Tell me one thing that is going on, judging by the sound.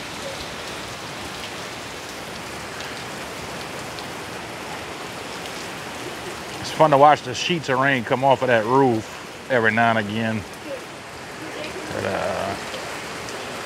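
Strong wind rushes through trees.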